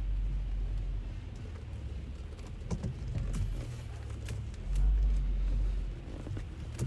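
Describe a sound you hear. Wind rumbles past a moving car.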